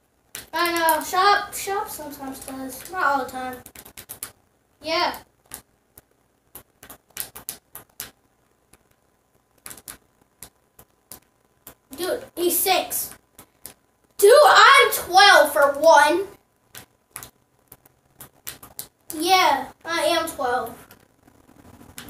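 Soft menu clicks tick repeatedly from a video game.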